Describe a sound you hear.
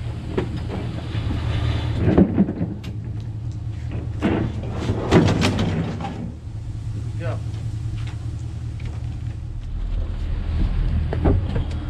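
A truck engine idles with a low steady rumble.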